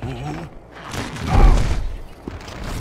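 A giant lands with a heavy, booming thud.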